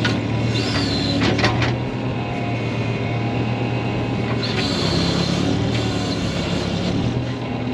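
Hydraulics whine and squeal as an excavator arm moves.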